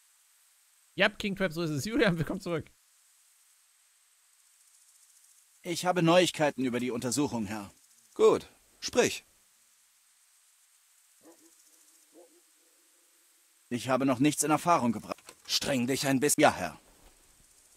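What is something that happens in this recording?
A man talks calmly through a microphone.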